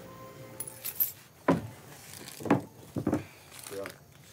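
A door lock clicks and rattles.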